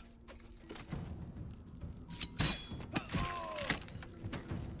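Weapons strike in a few sharp blows.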